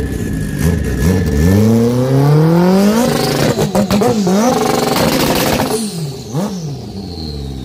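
A motorcycle engine revs hard and loud, rising and falling in pitch.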